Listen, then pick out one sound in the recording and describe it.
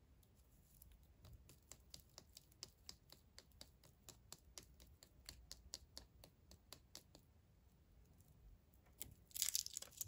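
Fingernails tap and click on a plastic-wrapped chocolate egg.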